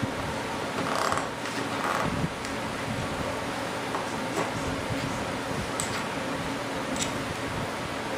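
Small metal parts click and clink in a man's hands.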